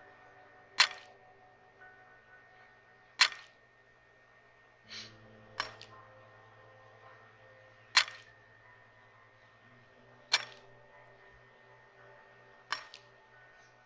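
A pickaxe strikes rock with sharp knocks at steady intervals.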